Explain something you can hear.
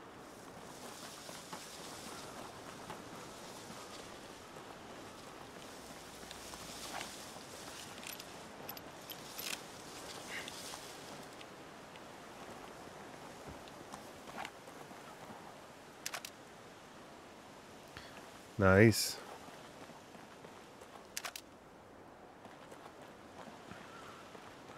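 A young man talks quietly into a close microphone.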